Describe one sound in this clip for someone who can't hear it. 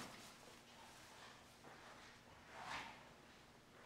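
Footsteps tap softly on a wooden floor.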